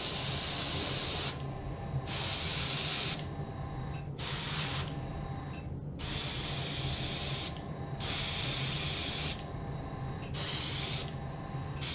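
An airbrush hisses in short, steady bursts of spraying.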